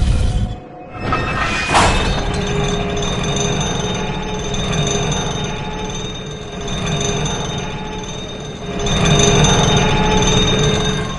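A metal lift rumbles and creaks as it rises.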